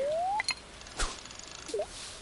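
A fishing lure plops into water.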